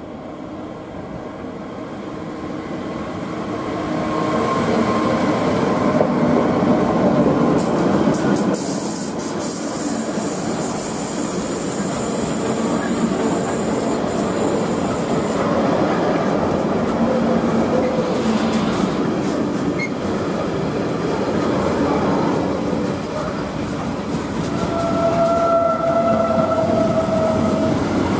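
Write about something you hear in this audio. A long freight train approaches and rumbles past close by, its wheels clattering and squealing on the rails.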